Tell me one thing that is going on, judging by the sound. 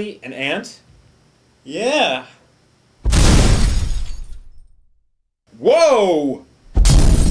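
A young man shouts playfully nearby.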